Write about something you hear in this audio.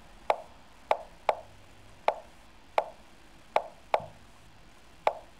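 A computer chess game clicks sharply with each move, every second or so.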